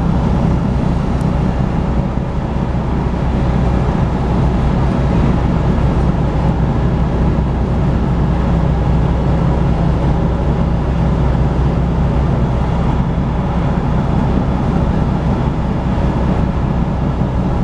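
A vehicle's engine and tyres rumble steadily inside the cabin at highway speed.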